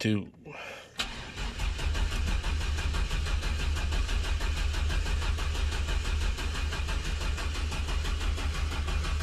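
A truck engine starts and idles with a steady, low rumble.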